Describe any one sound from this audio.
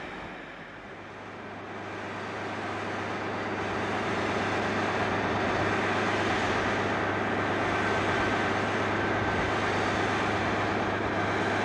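A diesel locomotive engine idles with a steady, low drone.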